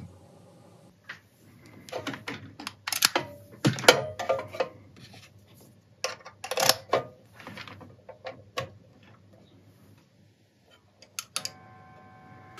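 Cable plugs click and knock into sockets.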